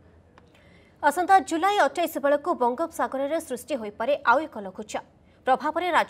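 A young woman reads out the news calmly into a microphone.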